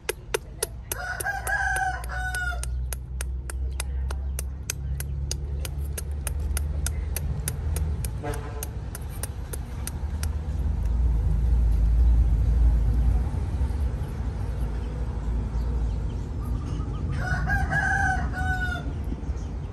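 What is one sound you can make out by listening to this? A baby monkey squeaks in short high cries.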